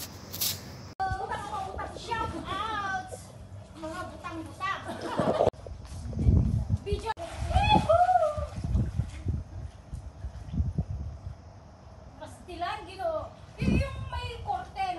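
Women laugh and shout playfully outdoors.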